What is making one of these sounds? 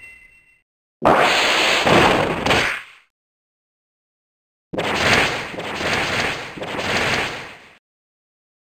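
A heavy game impact crashes with a whoosh.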